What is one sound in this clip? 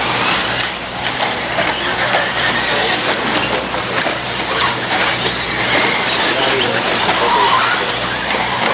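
Small electric motors of remote-controlled cars whine and rev.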